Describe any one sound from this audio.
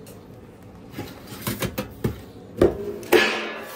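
Metal pans clank against each other.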